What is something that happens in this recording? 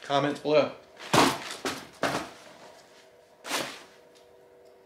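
Plastic wrapping and fabric rustle as a man unpacks clothing.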